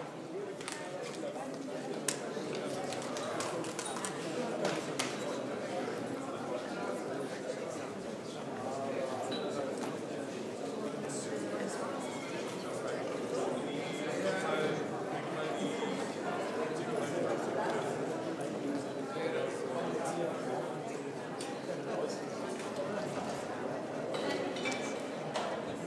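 A crowd of men and women chatters throughout a large echoing hall.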